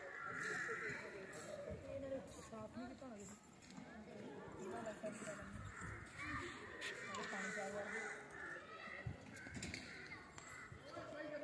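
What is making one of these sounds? A crowd of children and adults chatter and call out at a distance outdoors.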